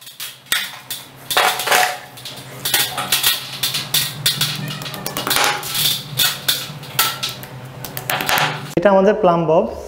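A hammer taps a nail into a wall with sharp knocks.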